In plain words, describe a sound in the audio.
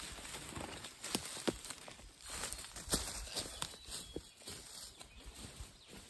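Footsteps crunch on dry twigs and leaves.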